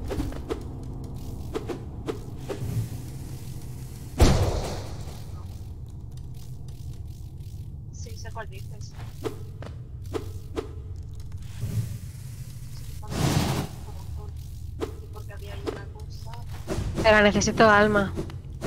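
Sword slashes whoosh and clang in a video game battle.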